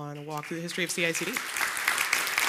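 A woman speaks into a microphone in a large hall, briefly and cheerfully.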